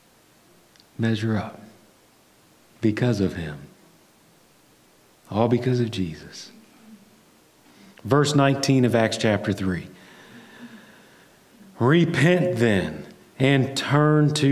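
A man speaks through a microphone in a large room, in short phrases with pauses.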